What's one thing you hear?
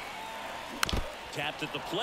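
A bat cracks sharply against a ball.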